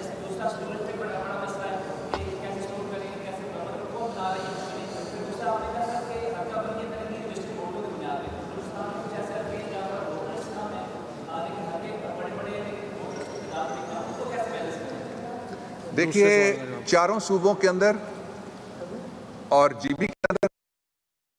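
An elderly man speaks with animation into microphones.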